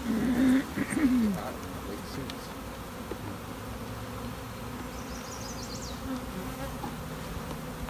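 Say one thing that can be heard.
A metal tool scrapes and pries at wooden hive frames.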